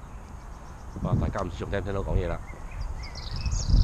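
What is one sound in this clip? A boy talks nearby outdoors.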